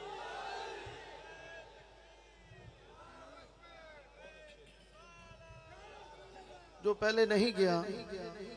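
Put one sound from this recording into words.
A man sings a chant through a microphone and loudspeakers.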